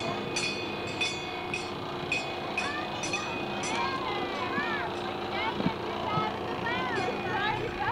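Children chatter and call out outdoors.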